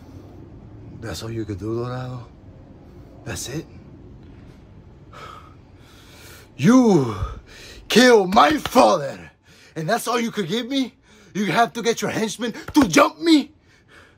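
A young man talks close to a microphone, first quietly and then loudly with animation.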